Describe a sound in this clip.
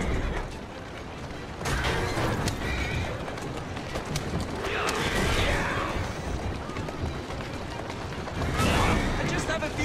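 Carriage wheels rumble and clatter over cobblestones.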